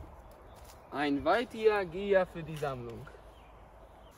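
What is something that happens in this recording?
A man speaks calmly and firmly nearby.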